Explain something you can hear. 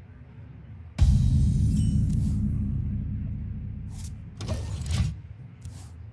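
A deep, booming game chime sounds and slowly fades.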